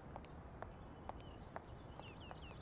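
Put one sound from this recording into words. Footsteps click on pavement.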